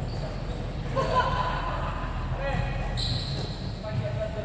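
Young players call out in the distance.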